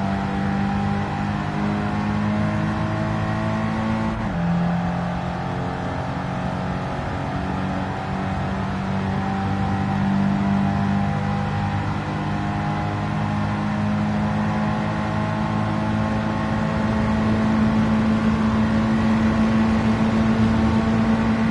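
A racing car engine hums steadily, dropping in pitch at a gear change and then slowly rising again.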